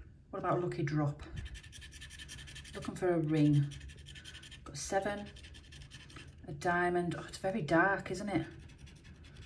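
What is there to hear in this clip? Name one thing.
A tool scratches rapidly across a card surface.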